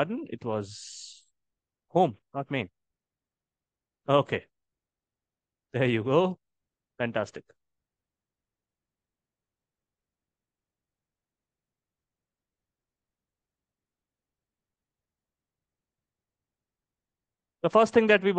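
A man talks calmly into a close microphone, in short bursts with long pauses.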